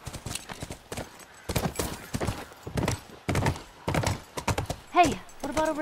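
A horse's hooves clop on pavement.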